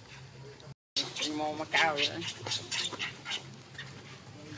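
A baby monkey cries out in shrill, wavering squeals.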